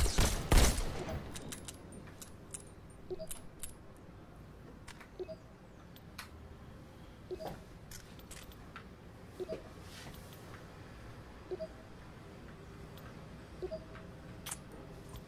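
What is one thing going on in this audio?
Metal clicks and clacks sound now and then as a gun is handled.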